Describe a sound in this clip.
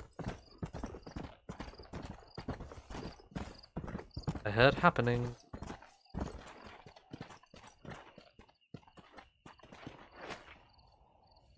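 Horse hooves gallop rapidly over dry ground.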